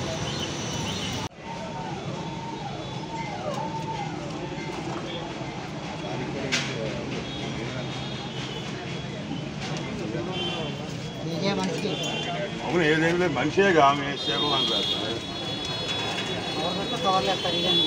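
Several men and women talk nearby outdoors.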